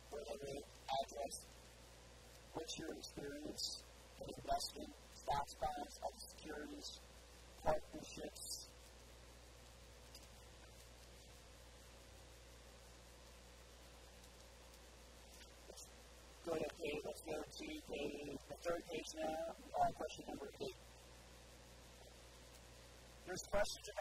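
A man reads aloud calmly through a clip-on microphone, with long pauses.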